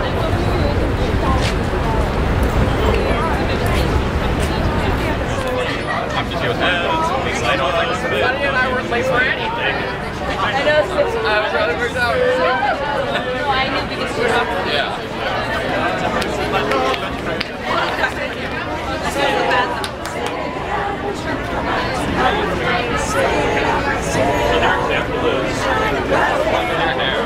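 City traffic rumbles in the background.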